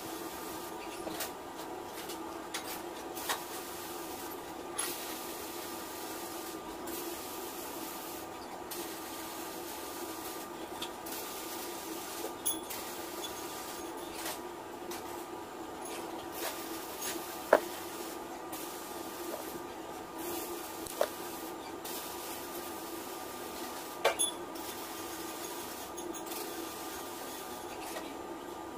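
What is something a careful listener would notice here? Wire scrapes and ticks under the fingers.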